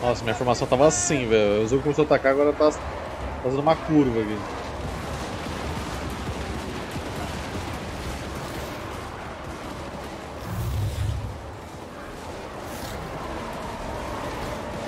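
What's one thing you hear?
A battle rumbles steadily.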